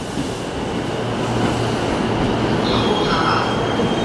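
Train doors slide shut with a thud.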